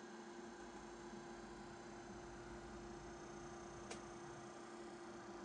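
A disc player's motor hums steadily and quietly.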